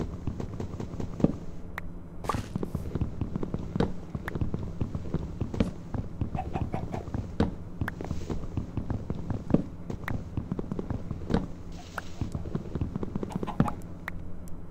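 Video game blocks of wood knock as they break.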